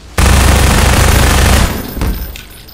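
A gun fires a loud burst of rapid shots.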